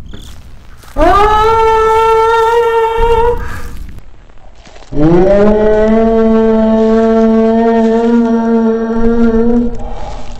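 A young man sings long, held notes close to a microphone.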